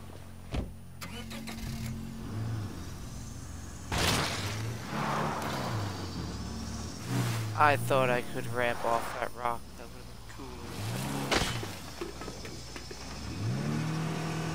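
A car engine starts and revs unevenly.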